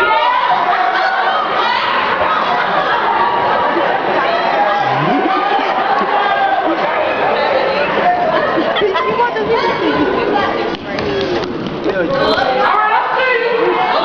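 A group of young performers shout and chant together in a large echoing hall.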